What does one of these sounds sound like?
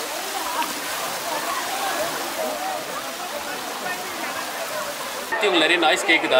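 Water rushes and splashes over rocks close by.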